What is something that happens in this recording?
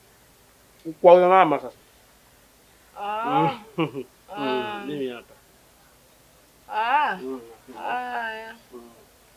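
A young woman speaks close by.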